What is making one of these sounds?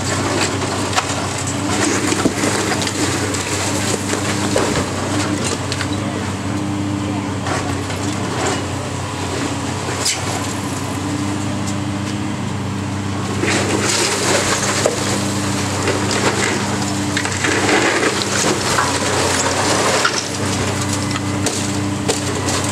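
Bricks and debris crash and clatter as a demolition claw tears at a wall.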